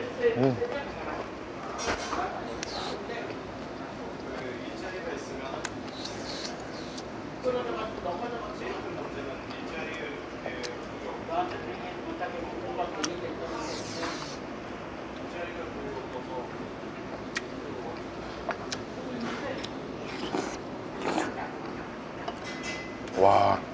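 A young man chews and smacks his lips loudly.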